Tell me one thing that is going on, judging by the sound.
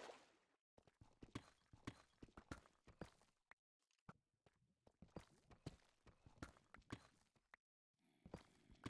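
A pickaxe chips at stone in quick, repeated taps.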